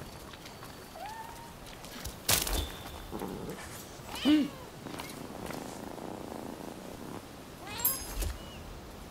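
A cat meows several times.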